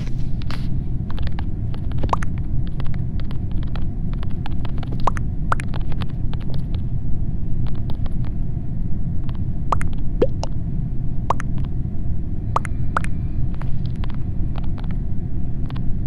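Keyboard keys click one by one.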